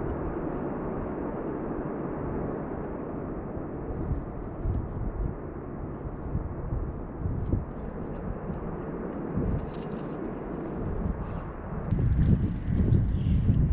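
Wind gusts and rumbles loudly outdoors.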